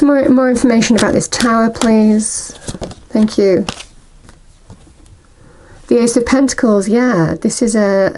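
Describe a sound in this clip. Playing cards riffle and slap softly as they are shuffled and handled.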